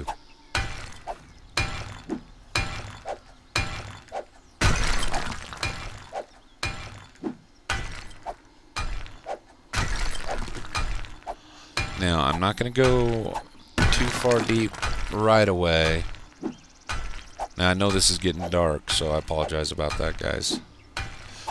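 A pickaxe strikes rock again and again.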